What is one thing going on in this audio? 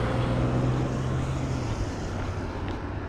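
A car drives past on a nearby street.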